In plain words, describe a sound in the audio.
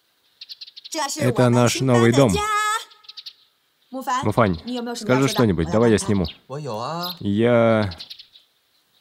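A young woman speaks brightly and with animation.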